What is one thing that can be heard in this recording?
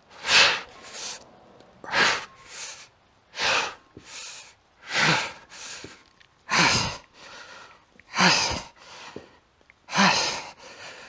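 A man exhales sharply and forcefully with each lift, in a steady rhythm.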